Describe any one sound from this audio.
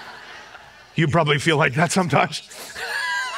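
A woman laughs into a microphone.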